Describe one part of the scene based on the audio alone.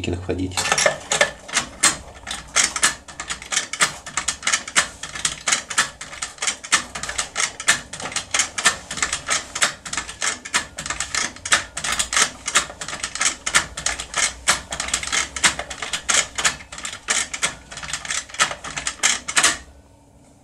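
A metal pick scrapes and clicks rapidly against metal.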